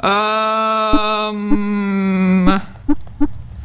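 A retro video game plays a steady buzzing electronic tone.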